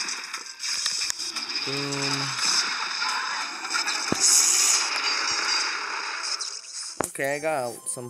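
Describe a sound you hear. Cartoonish battle sound effects zap, pop and burst in a dense, rapid clatter.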